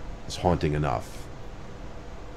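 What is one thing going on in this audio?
A man speaks briefly into a close microphone.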